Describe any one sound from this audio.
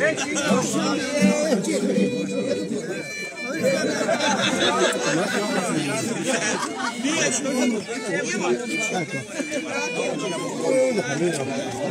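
Men and women talk and shout loudly over the music.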